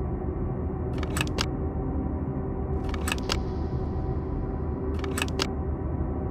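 Wooden pegs click into holes in a wooden board.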